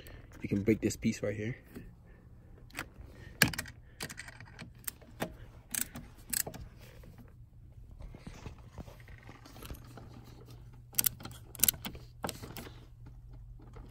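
A ratchet clicks as it turns a bolt.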